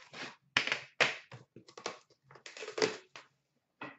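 A metal tin clatters down onto plastic.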